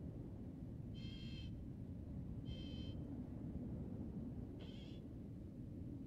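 A small robot chirps and beeps in short bursts.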